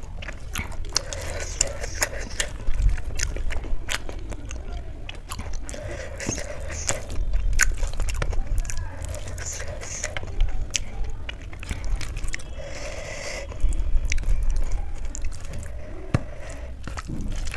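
Fingers squish and mix soft food close to a microphone.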